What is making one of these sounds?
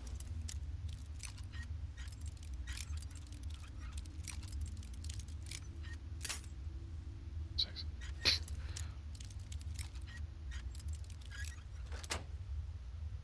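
A lockpick scrapes and clicks faintly in a lock.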